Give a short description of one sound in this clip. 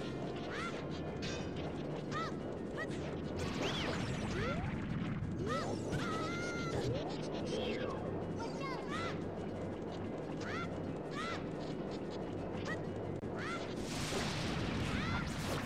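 Short electronic chirps sound again and again.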